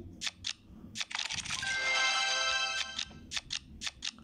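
A bright chiming flourish rings out as a run of cards is cleared.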